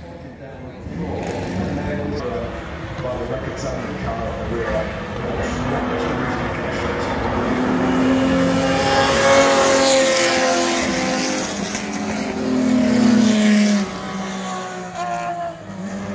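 Race car engines roar as a group of sports cars speeds past.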